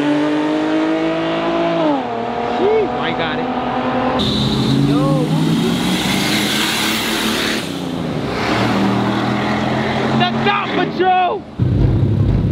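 Car engines roar and rev as cars drive past on a street.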